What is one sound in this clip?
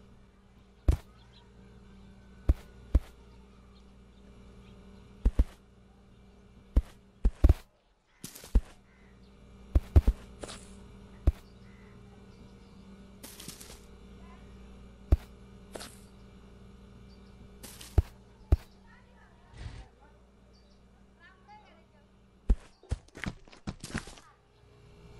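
Objects drop and thud sharply onto the ground, again and again.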